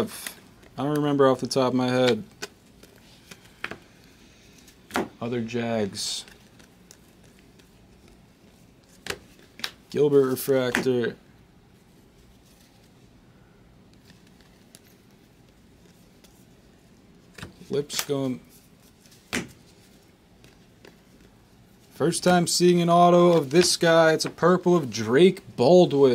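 Trading cards flick and rustle as they are shuffled by hand.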